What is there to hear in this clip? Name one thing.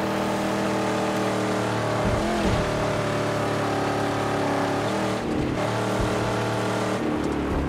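Tyres crunch over loose sand.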